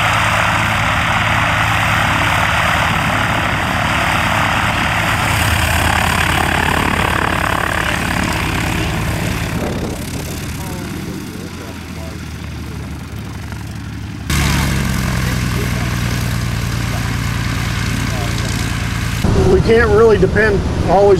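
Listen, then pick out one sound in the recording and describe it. A small propeller plane's engine runs with a steady, droning hum.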